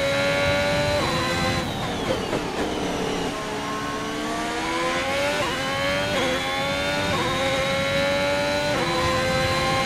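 A racing car's gears shift with sharp clicks.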